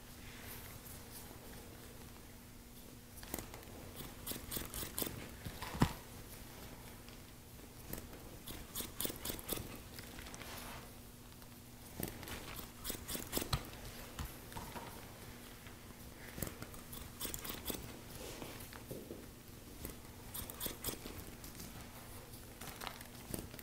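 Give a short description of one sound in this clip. Fingers rustle through hair.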